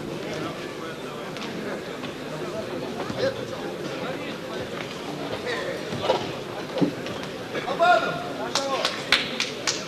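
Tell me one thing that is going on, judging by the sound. A crowd murmurs and shouts in a large echoing hall.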